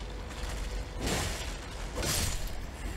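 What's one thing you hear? A sword swings with a sharp whoosh.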